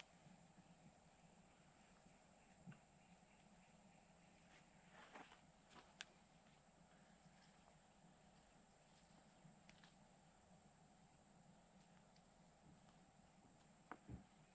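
Hands scrape and rustle through loose soil.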